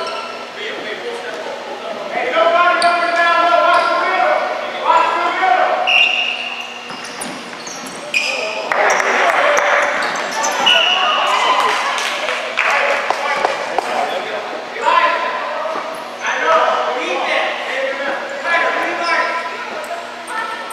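Spectators close by talk and cheer in a large echoing gym.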